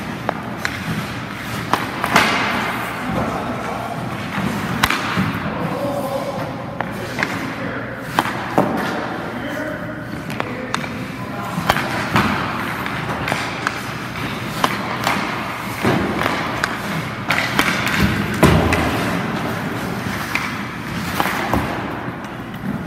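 Hockey pucks crack off a stick in an echoing indoor rink.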